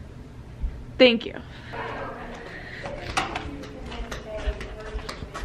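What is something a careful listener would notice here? A young woman exclaims loudly with delight.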